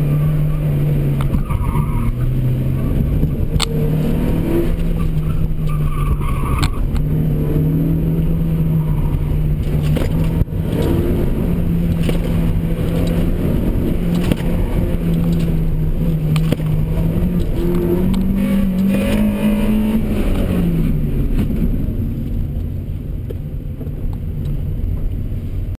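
Tyres squeal on pavement during tight turns.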